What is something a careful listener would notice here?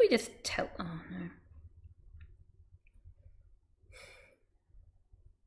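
A young woman speaks casually, close to a microphone.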